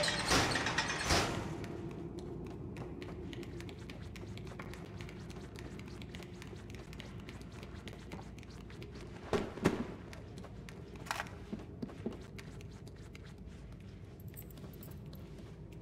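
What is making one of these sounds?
Small footsteps patter quickly across a hard floor.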